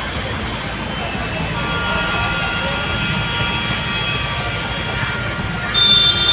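Car tyres swish through floodwater.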